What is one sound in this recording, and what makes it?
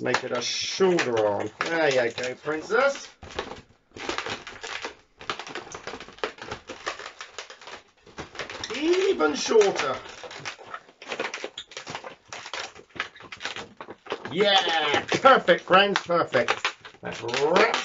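Rubber balloons squeak and creak as they are twisted.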